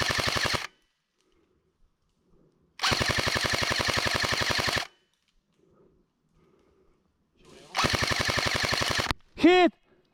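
A machine gun fires loud rapid bursts close by.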